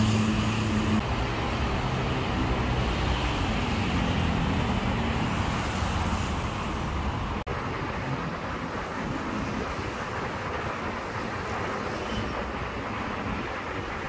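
Traffic roars steadily past outdoors.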